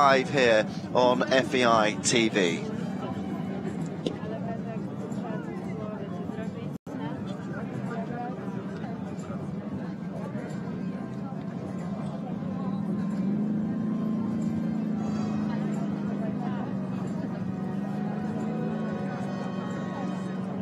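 A crowd murmurs faintly outdoors in a wide open space.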